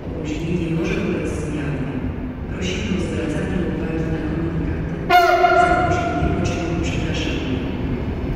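A train rumbles slowly into the station and comes to a stop.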